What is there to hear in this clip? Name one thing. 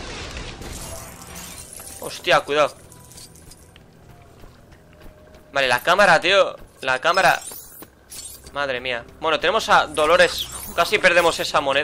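Coins tinkle and chime as they are collected.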